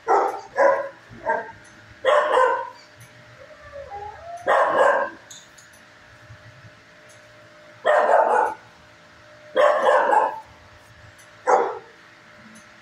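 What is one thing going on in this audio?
A dog barks loudly in sharp bursts, echoing off hard walls.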